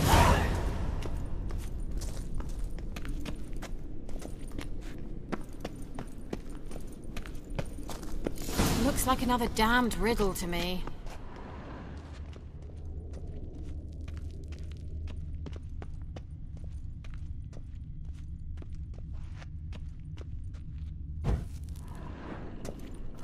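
Footsteps tap on a stone floor in an echoing passage.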